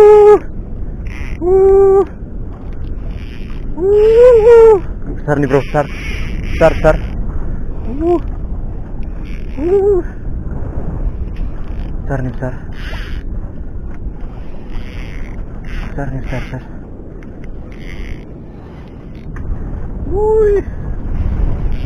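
A fishing reel whirs and clicks as its line is wound in.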